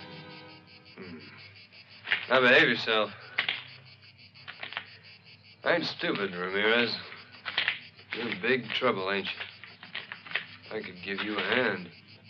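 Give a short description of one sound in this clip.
A man speaks tensely and firmly, close by.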